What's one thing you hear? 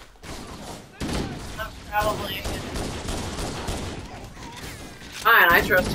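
Game weapons fire with sharp blasts.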